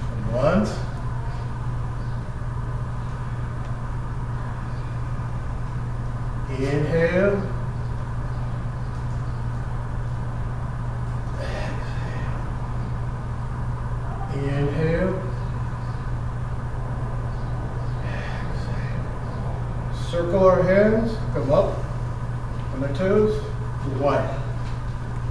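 An older woman speaks in short bursts, calling out instructions.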